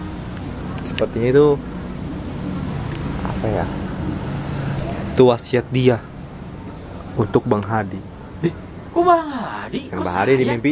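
A young man speaks in a low voice close to a microphone, in short bursts.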